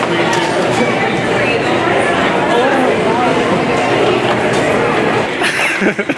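A glass door opens and closes with a thud.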